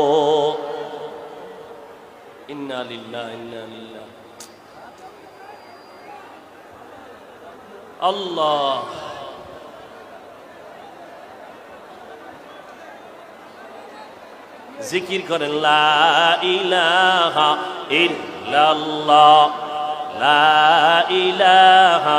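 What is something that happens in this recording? A man preaches loudly into a microphone, his voice carrying over a loudspeaker with a long echo.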